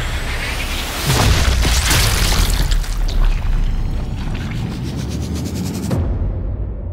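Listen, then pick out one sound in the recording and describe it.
A bullet strikes with a heavy, drawn-out crunch.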